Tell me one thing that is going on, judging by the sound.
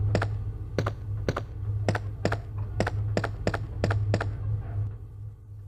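Footsteps tap steadily along a hard floor.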